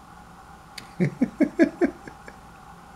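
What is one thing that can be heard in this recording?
A man chuckles close to the microphone.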